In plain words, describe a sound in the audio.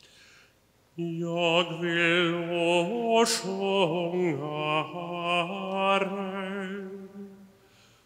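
A middle-aged man reads aloud steadily through a microphone.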